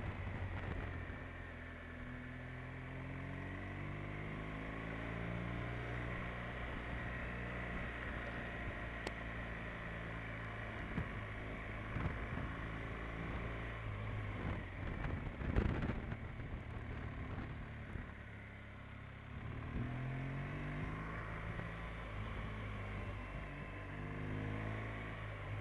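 A motorcycle engine hums and changes pitch as the rider shifts gears.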